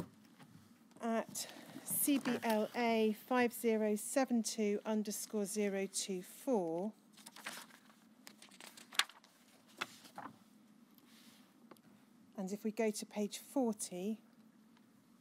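A woman speaks slowly and emotionally into a microphone.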